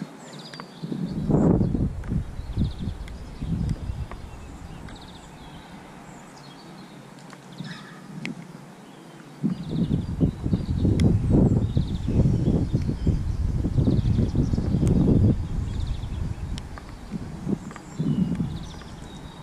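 Wind gusts rumble outdoors.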